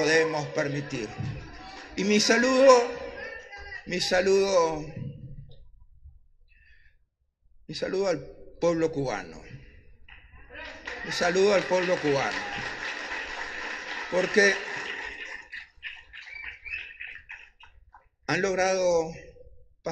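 An older man speaks calmly into a microphone, heard through a loudspeaker in a hall.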